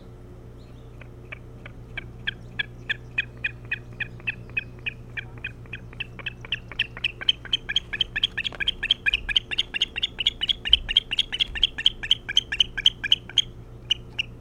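An eagle calls with a rapid series of high, piping chirps that grow louder.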